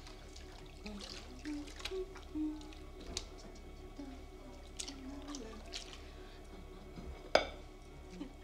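Dishes clink and rattle in water.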